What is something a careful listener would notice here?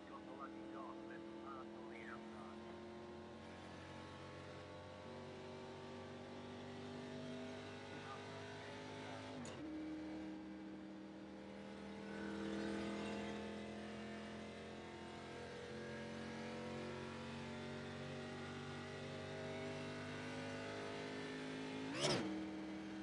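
A race car engine drones steadily and climbs in pitch as the car speeds up.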